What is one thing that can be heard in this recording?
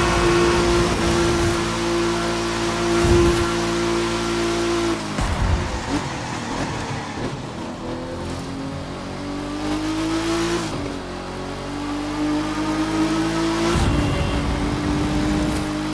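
A sports car engine roars and drops in pitch between gear changes.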